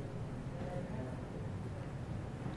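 A woman speaks quietly at a distance in a large room.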